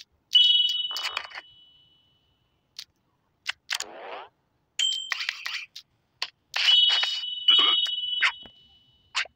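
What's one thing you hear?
Bright game chimes ring out now and then.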